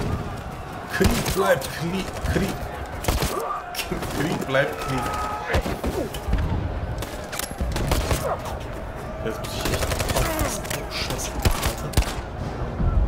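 Gunshots crack in sharp bursts.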